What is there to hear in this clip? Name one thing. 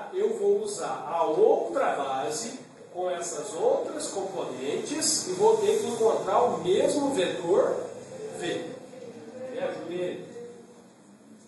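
A man explains calmly and clearly, close by.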